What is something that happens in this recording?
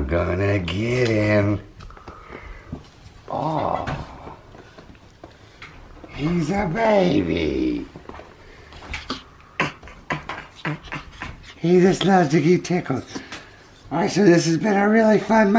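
A man talks playfully up close.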